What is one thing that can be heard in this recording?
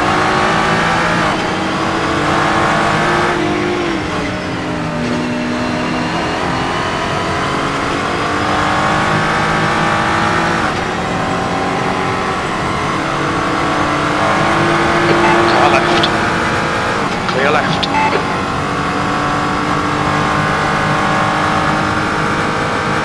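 A racing car engine roars loudly, revving up and dropping as the gears shift.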